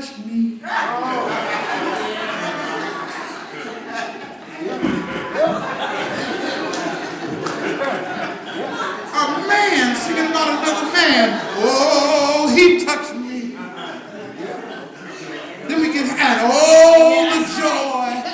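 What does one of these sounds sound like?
A man preaches with animation through a microphone and loudspeakers, in an echoing room.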